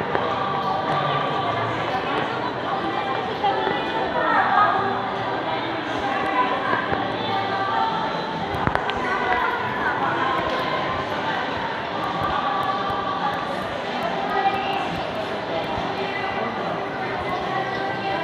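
Footsteps tap on a tiled floor.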